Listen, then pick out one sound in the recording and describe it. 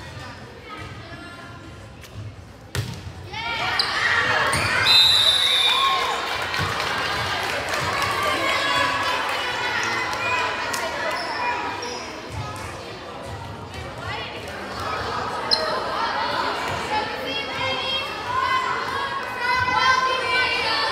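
Young female players call out and shout to each other.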